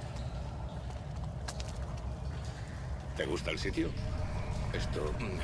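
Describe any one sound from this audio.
Footsteps shuffle softly over a stone floor.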